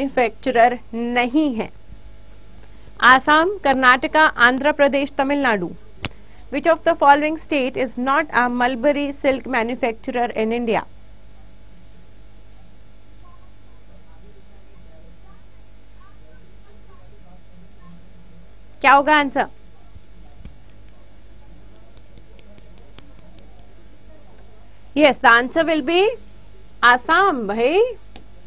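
A young woman speaks clearly into a microphone, explaining in a teaching tone.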